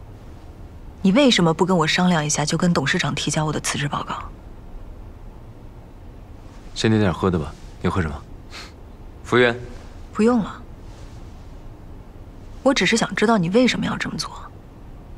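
A young woman speaks with agitation, close by.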